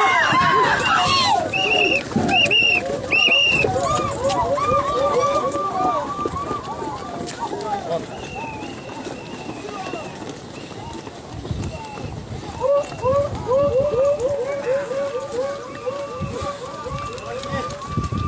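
A crowd of men chants rhythmically together outdoors.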